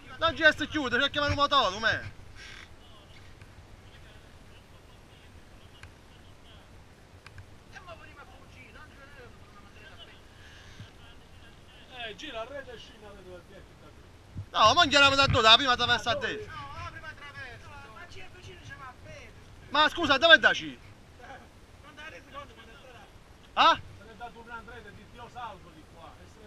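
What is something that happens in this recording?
A man talks loudly and with animation close by, sometimes shouting.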